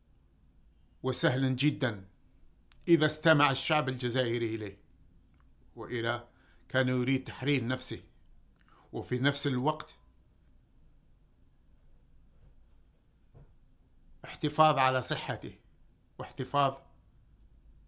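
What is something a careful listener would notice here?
A middle-aged man speaks earnestly and close to a microphone, in short bursts with pauses.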